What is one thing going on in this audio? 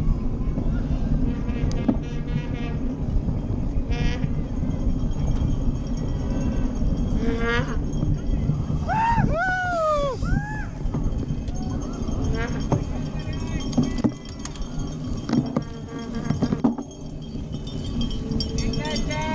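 Bicycle tyres rumble and crunch over a bumpy dirt track.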